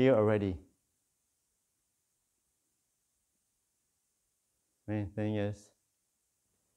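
A man speaks calmly and slowly into a microphone, with long pauses.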